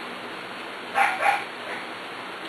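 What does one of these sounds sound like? A puppy squeals briefly up close.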